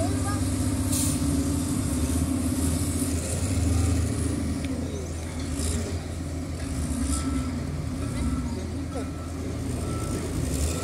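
An excavator's engine drones in the distance.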